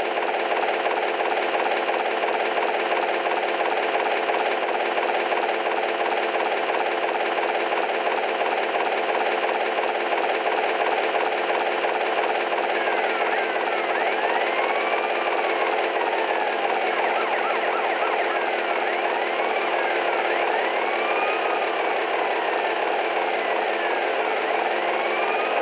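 A helicopter's rotor chops steadily overhead.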